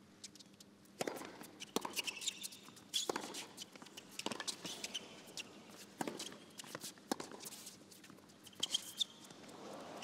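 A tennis ball is struck back and forth with sharp pops of racquets.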